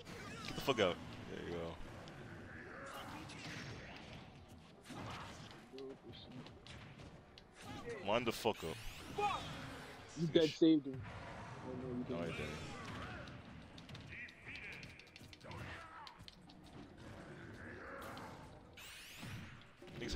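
Electric zaps crackle as special attacks fire.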